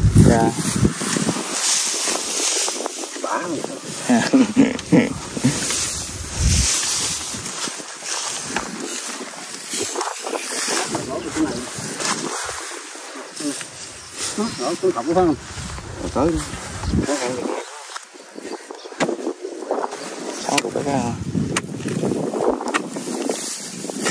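A shovel digs and scrapes into dry soil.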